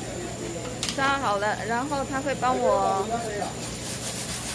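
A woman speaks nearby in a lively voice.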